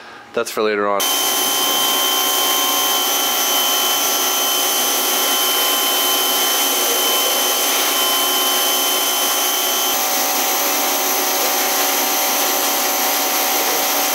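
A pressure washer motor hums steadily.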